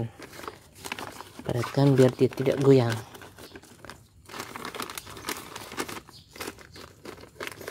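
Hands press and crumble damp soil with soft rustling.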